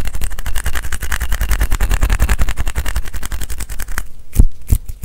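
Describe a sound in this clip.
Fingers tap and scratch rapidly close to a microphone.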